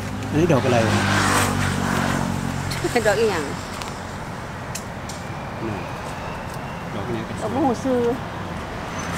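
A woman speaks calmly nearby, outdoors.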